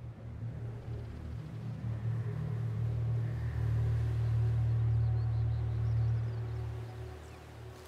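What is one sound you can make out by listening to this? Clothing rustles and dirt scrapes as someone crawls along the ground.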